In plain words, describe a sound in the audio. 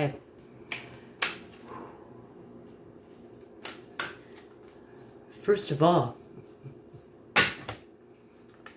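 Cards or papers rustle and tap in a person's hands.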